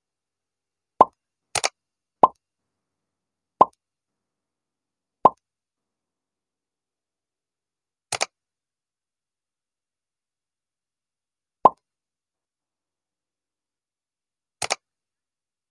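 Short clicking pops sound as pins are moved.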